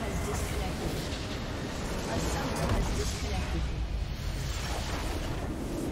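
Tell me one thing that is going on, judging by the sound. A large structure crumbles and explodes.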